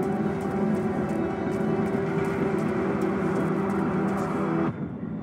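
Footsteps tap on a hard floor at a steady walking pace.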